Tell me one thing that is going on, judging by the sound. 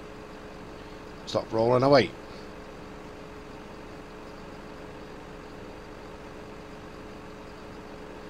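A heavy forestry machine's engine hums steadily.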